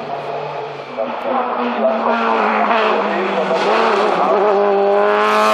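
A sports prototype engine revs high and roars toward the listener.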